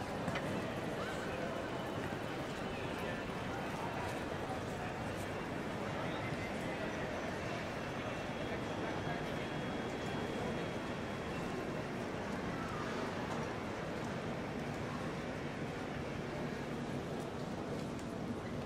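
Distant voices murmur in a large echoing hall.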